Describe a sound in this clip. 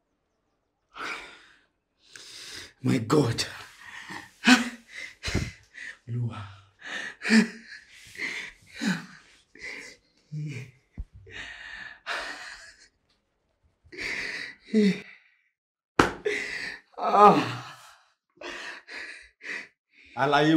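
A young man wails and cries out in distress close by.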